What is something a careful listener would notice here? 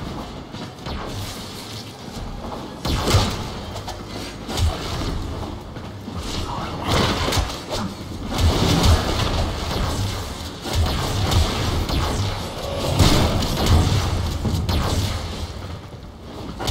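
Energy weapons fire and blast in rapid bursts.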